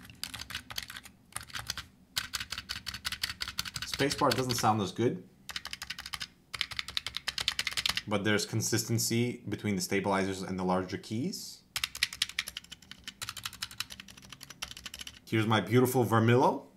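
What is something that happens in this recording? Keyboard keys clatter rapidly under fast typing.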